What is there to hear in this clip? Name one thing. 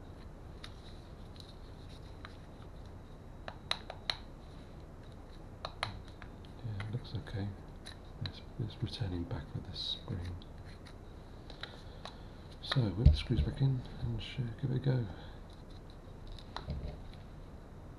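Small plastic parts click and tap as a key fob is handled.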